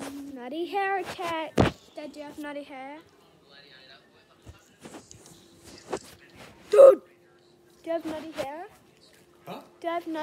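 A young woman talks close by with animation, her voice rising in pitch.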